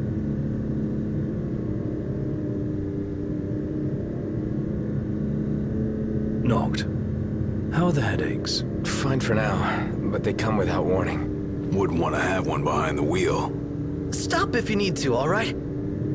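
A car engine hums steadily at cruising speed.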